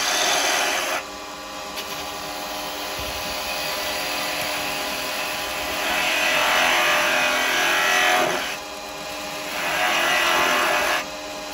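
A chisel scrapes and hisses against spinning wood in bursts.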